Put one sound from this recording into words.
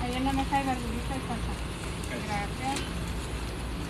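A woman talks nearby in a casual tone.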